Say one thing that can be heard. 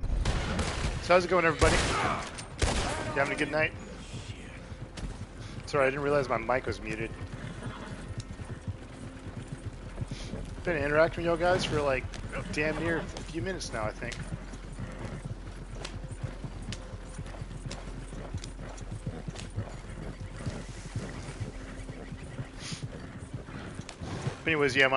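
Horses' hooves clop steadily on a dirt track.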